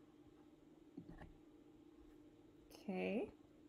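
A young woman speaks briefly and calmly close to a microphone.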